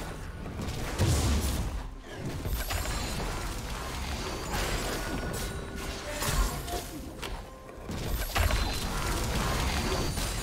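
Game spells burst and whoosh in quick bursts during a fight.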